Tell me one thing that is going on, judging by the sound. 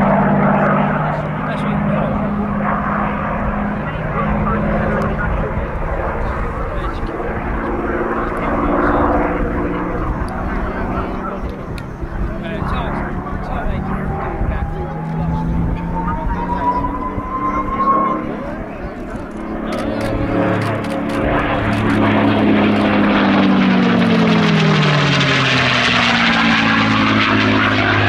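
A propeller plane engine drones overhead, growing louder as it passes close by with a falling pitch.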